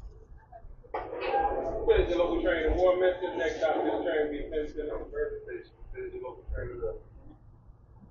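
A man speaks nearby in a raised, animated voice.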